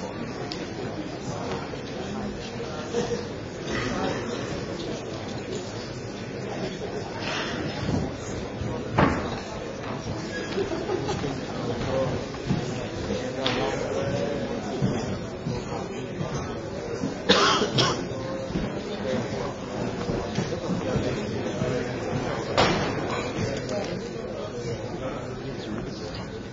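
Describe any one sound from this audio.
A large audience murmurs and chatters in a big hall.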